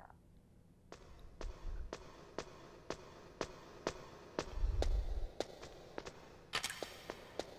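Footsteps clank on metal ladder rungs in a steady rhythm.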